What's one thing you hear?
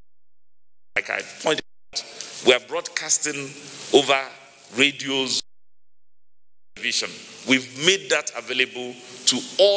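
A man speaks calmly and steadily into a microphone.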